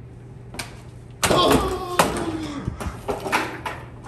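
A plastic toy hoop clatters onto a hard floor.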